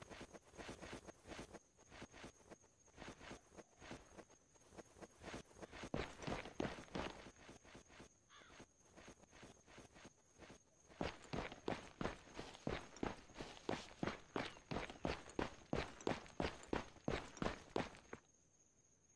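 Boots run on pavement.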